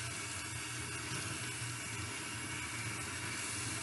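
Hands rub and squeeze wet hair under running water.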